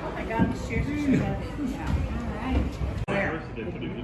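Adult men and women chat nearby in a lively room.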